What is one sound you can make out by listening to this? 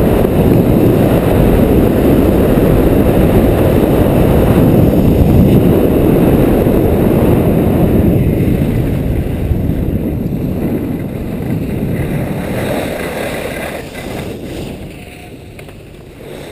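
Wind rushes hard past, then dies down as the skier slows.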